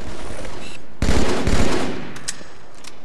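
A melee weapon strikes with a heavy thud.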